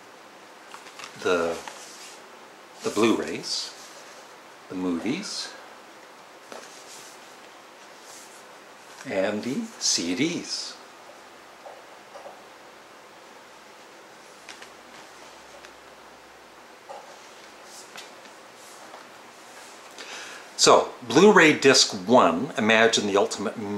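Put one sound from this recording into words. A middle-aged man talks calmly and close by, pausing now and then.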